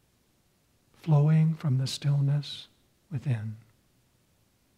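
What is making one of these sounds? An elderly man speaks calmly and slowly into a microphone, close by.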